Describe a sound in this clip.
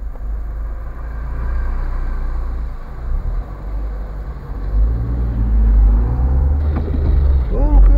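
Heavy trucks rumble past close by.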